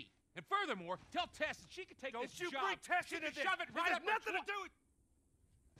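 A man argues angrily, shouting close by.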